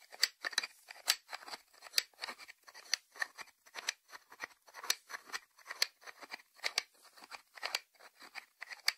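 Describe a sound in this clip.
Fingertips tap close up on a ceramic lid.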